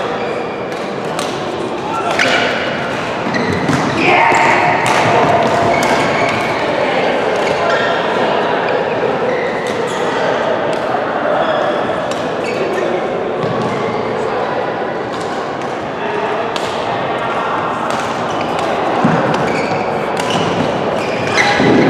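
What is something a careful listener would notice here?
Shuttlecocks are struck sharply with rackets, again and again.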